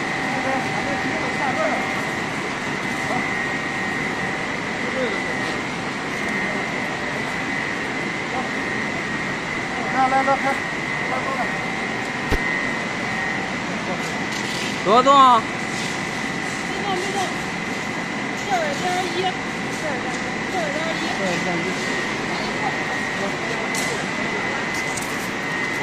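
Factory machinery hums steadily.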